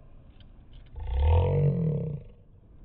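A young man laughs loudly in a slowed-down, deep voice.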